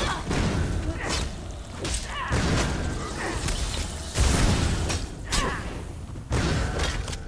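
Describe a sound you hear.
Weapons clash and slash in quick, heavy blows.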